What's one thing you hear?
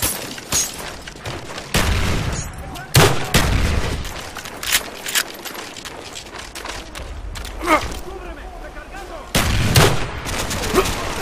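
A rifle fires loud, sharp single shots.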